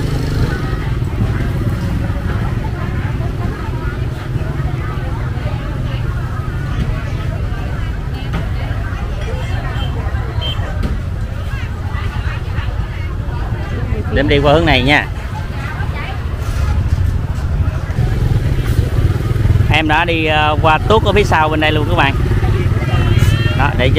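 A motorbike engine idles nearby.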